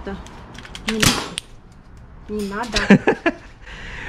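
An airsoft pistol fires with sharp snaps.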